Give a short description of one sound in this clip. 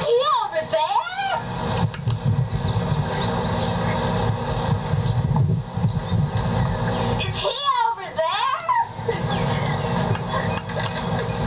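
A young girl sings and squeals loudly outdoors.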